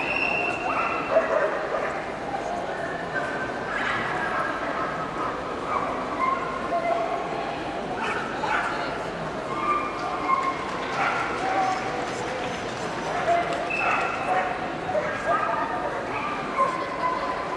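A crowd chatters in a large, echoing hall.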